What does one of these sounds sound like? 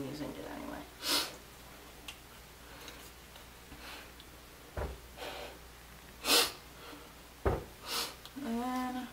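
A young woman sniffs sharply through her nose.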